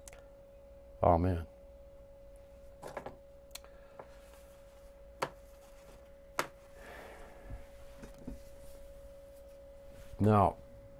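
An elderly man speaks slowly and softly into a close microphone, in short phrases with long pauses.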